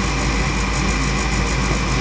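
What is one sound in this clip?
A gas burner roars softly as its flame burns.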